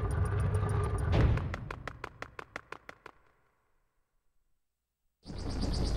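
Cheerful video game music plays.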